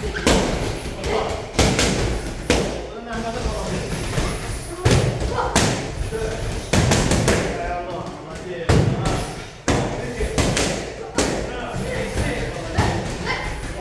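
Boxing gloves thud sharply against pads in quick bursts.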